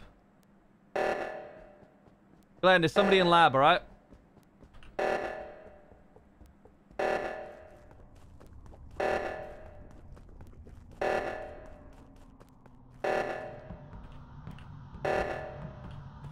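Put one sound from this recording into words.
An alarm blares in repeated even pulses.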